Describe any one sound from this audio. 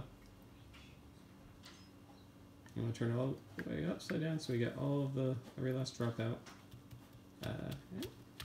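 Liquid trickles into a glass cylinder.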